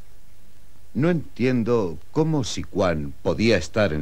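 A man speaks loudly and forcefully nearby.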